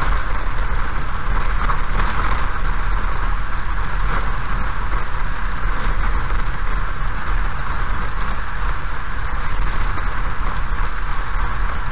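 Tyres roll over a wet gravel road.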